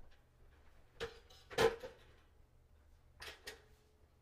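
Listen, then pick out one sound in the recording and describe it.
Cardboard knocks and scrapes as it is handled.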